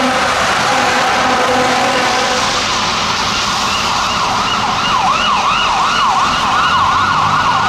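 Tyres hiss on a wet road as traffic passes.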